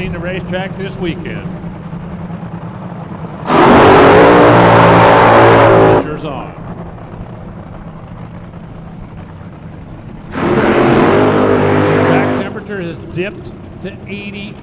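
A dragster engine idles with a deep, steady rumble.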